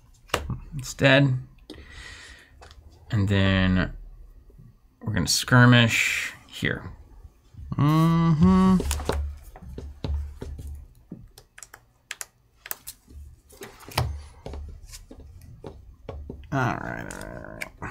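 Game pieces click and tap on a board.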